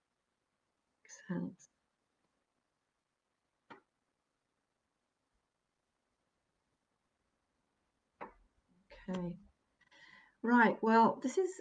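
A woman speaks calmly and close by, with long pauses.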